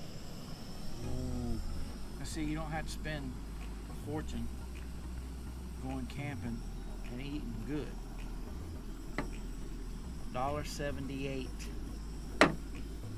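A man talks calmly and close by, outdoors.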